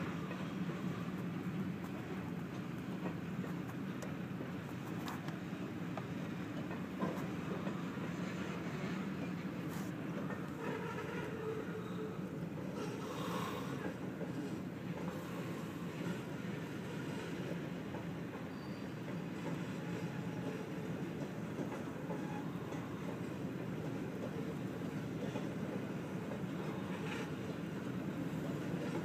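A car engine idles.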